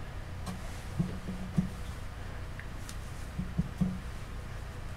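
A hard object knocks lightly on a tabletop a few times.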